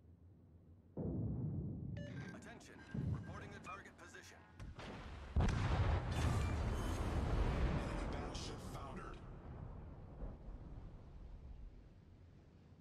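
Heavy explosions boom and rumble one after another.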